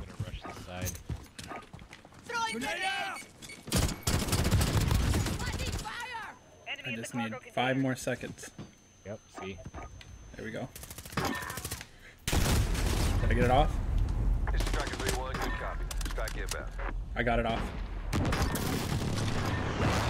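Gunfire crackles in bursts from a video game.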